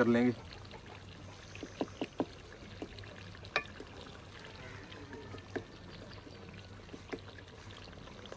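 A wooden spatula scrapes and knocks against a metal pot.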